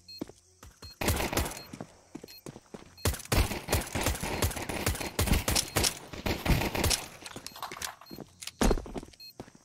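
A silenced pistol fires in quick bursts of shots.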